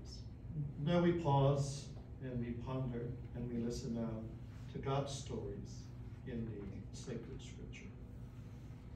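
An elderly man reads out calmly through a microphone.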